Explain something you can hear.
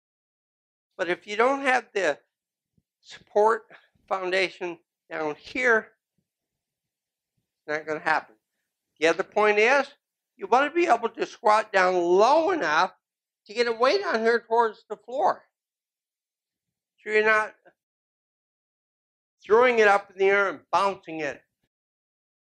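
An older man talks calmly and clearly into a microphone, in short phrases with pauses.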